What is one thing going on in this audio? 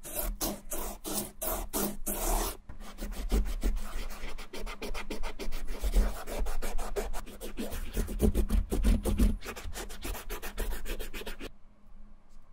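A cotton swab scrubs against a shoe's leather with a soft, rapid rubbing.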